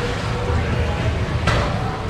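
A knife slices through raw fish on a plastic cutting board.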